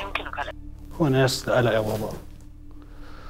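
A young man speaks briefly in a low voice.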